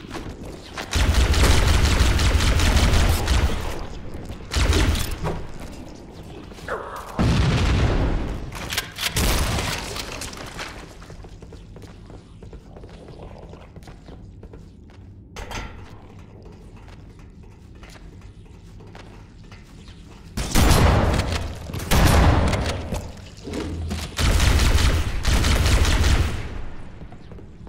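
Energy weapons fire in loud, rapid bursts.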